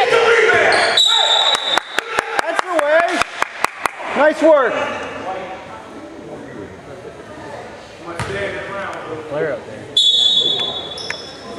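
A referee's whistle blows short, shrill blasts.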